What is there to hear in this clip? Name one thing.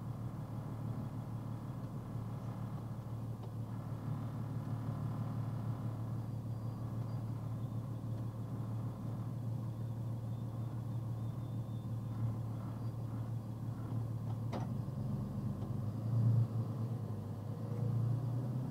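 A car engine hums steadily from inside the vehicle as it drives slowly.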